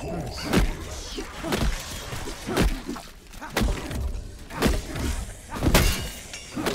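Zombies snarl and groan close by.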